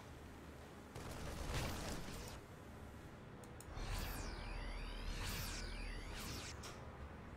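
Game weapons fire and explode in short bursts.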